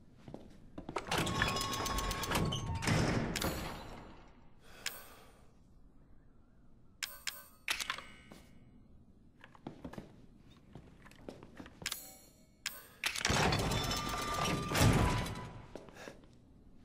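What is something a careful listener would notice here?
A heavy metal gun clanks and rattles as it is lifted and set down.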